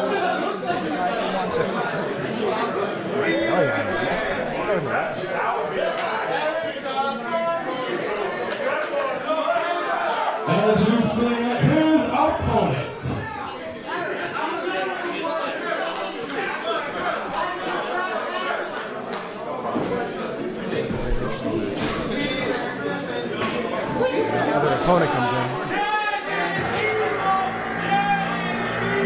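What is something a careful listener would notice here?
A crowd chatters and murmurs in a large hall.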